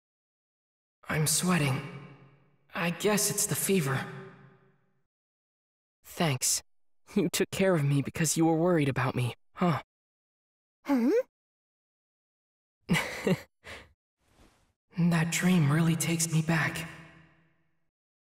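A young man speaks softly and calmly, close by.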